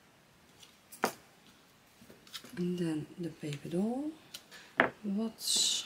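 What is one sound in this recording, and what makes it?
Metal tweezers tap and click against card.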